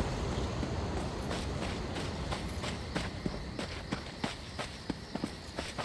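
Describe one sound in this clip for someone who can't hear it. Footsteps patter quickly over ground.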